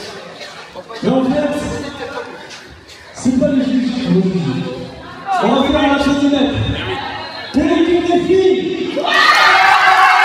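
A man calls out in short bursts through a microphone in a large echoing hall.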